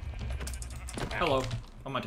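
A sword strikes a player with sharp hits.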